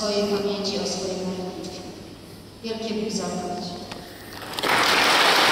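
A middle-aged woman speaks calmly through a microphone in an echoing hall.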